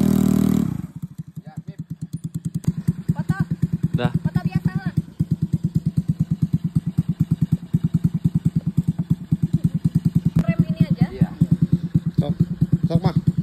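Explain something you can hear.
A small engine putters steadily as a go-kart drives over dirt.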